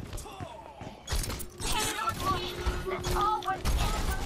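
Weapon shots fire in quick bursts.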